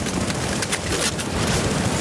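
A large explosion roars with rushing flames.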